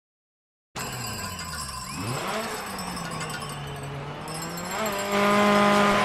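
A rally car engine idles and revs.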